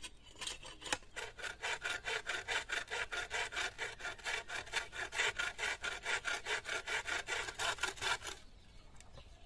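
A hand saw rasps back and forth through bamboo.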